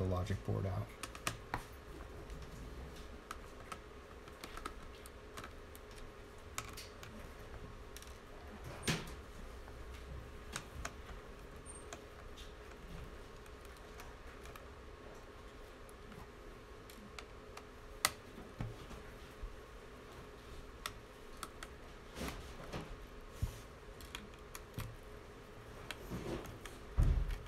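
A screwdriver clicks and taps on small metal screws.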